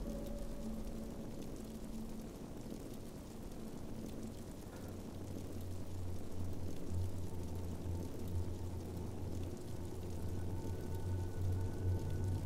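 Flames crackle and roar steadily.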